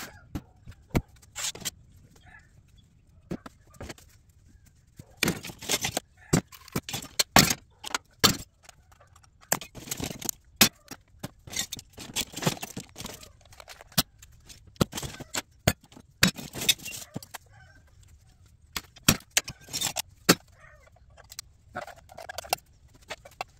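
Hard objects clink and clatter.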